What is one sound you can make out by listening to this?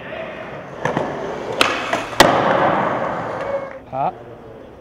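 Skateboard wheels roll over a smooth concrete floor.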